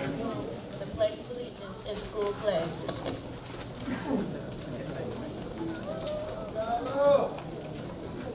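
A young woman speaks into a microphone over loudspeakers.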